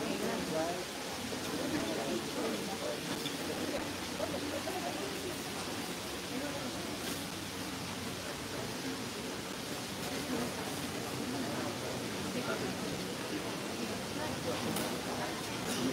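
A young woman speaks into a microphone over loudspeakers, reading out calmly.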